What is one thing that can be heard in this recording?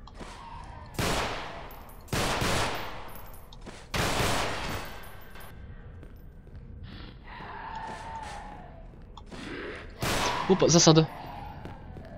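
Loud gunshots ring out with a long echoing tail.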